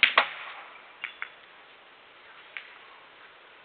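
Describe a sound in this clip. Billiard balls knock against each other and clatter into a pocket.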